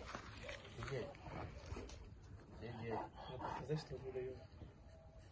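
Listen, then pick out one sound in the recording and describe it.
A man speaks calmly to a dog nearby.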